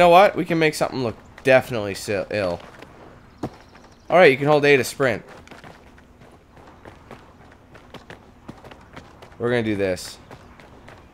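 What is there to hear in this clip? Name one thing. Footsteps patter quickly on concrete.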